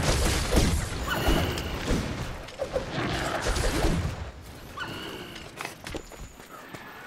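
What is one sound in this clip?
Sword strikes clash and thud in a video game fight.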